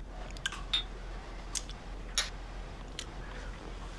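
A man sips from a cup.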